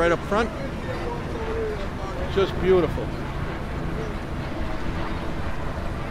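A crowd of people chatters at a distance outdoors.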